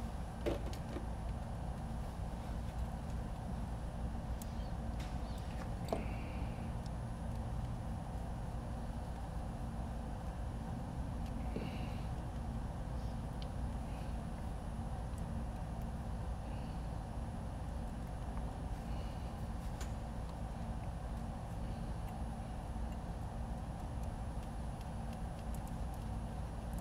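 A small screwdriver clicks and taps against metal screws.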